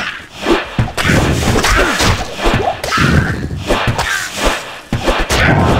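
Video game weapons strike monsters in a melee battle.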